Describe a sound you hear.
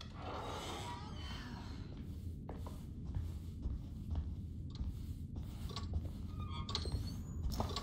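Footsteps walk along a floor indoors.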